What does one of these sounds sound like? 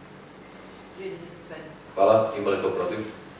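A man speaks calmly into a microphone, heard through loudspeakers in a large room.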